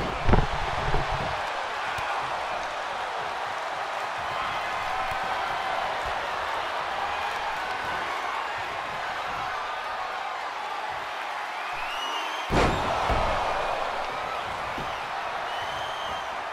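A large crowd cheers and whistles steadily in an echoing arena.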